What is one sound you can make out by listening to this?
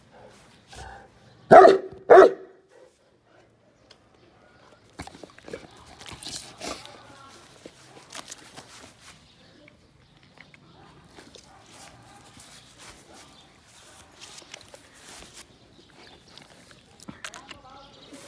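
A dog chews and slurps wet raw meat up close.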